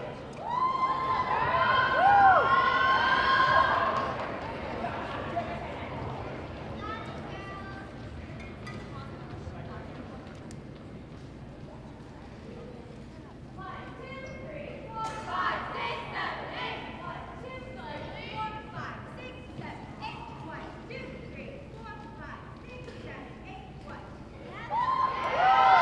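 Young girls shout and cheer loudly in a large echoing hall.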